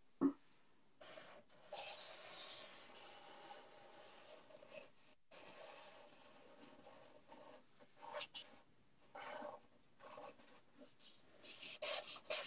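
Marker pens squeak and scratch on paper.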